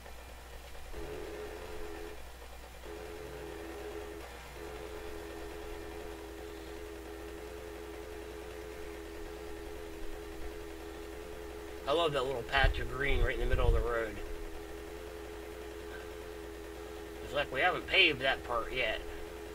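A motorbike engine hums steadily at low speed.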